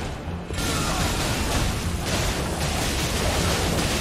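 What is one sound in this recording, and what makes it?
Fire magic bursts with a loud roar.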